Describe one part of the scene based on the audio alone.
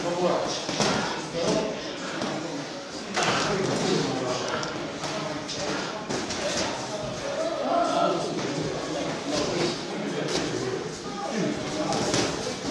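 Boxing gloves thud against headgear and body in sparring.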